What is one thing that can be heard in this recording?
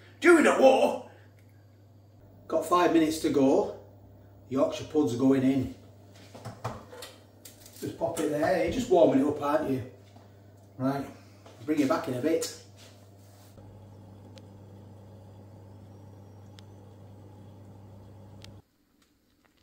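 An oven hums steadily.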